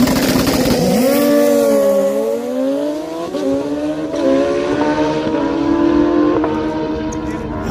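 Motorcycles race off into the distance, their engines rising in pitch through the gears.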